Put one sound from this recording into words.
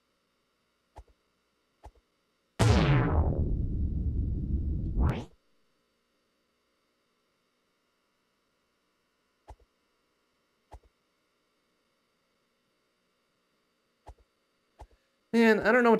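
Light footsteps tap now and then.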